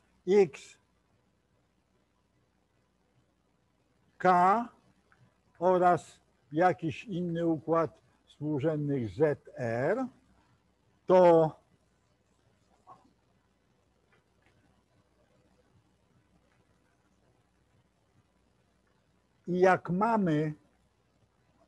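An elderly man lectures calmly.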